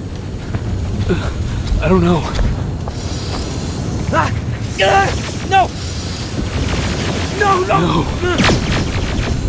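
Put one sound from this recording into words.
A man speaks close by.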